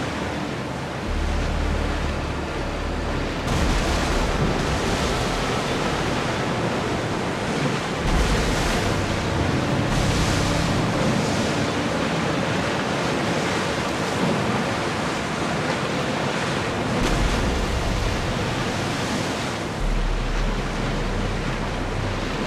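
Waves splash and rush against a wooden ship's hull.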